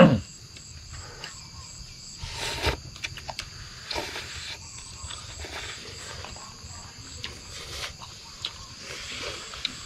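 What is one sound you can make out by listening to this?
A man slurps noodles.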